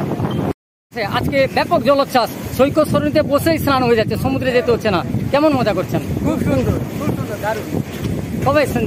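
A young man speaks with animation, close to the microphone, outdoors by the sea.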